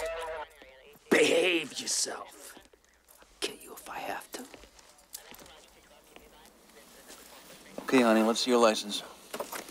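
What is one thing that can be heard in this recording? A young woman speaks quietly in short phrases.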